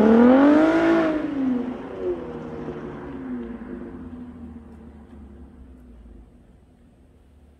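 A sports car drives away and its engine fades into the distance.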